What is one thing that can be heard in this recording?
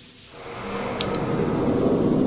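A flashlight drops onto a hard floor with a short clatter.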